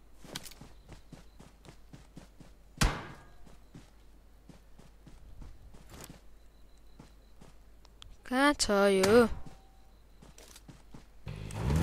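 Footsteps rustle through grass.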